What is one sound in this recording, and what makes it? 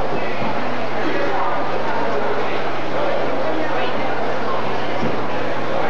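A big band plays brassy swing music loudly in a large hall.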